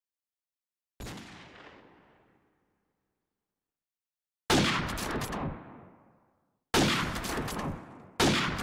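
A rifle fires loud, sharp shots that echo and fade away.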